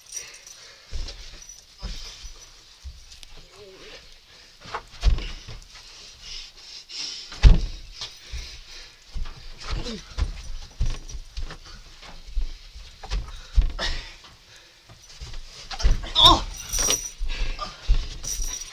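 Heavy footsteps thump on a wooden floor.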